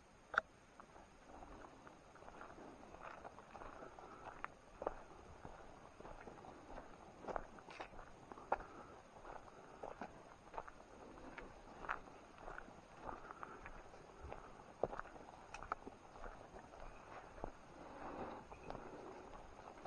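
Footsteps crunch on dry leaves and twigs along a forest path.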